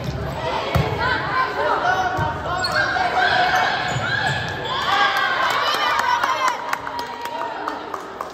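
Spectators cheer and shout from nearby.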